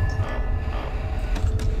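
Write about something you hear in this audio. Electronic static hisses and crackles.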